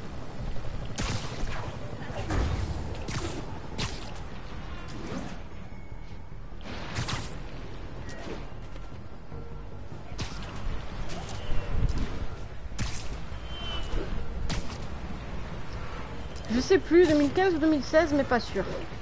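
Quick whooshes of swinging through the air come again and again.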